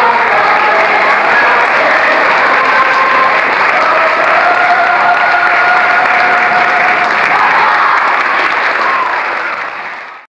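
A crowd of young performers cheers and shouts in a large hall.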